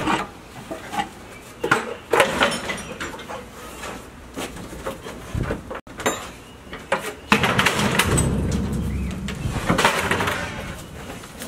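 Cardboard rustles and scrapes as it is carried.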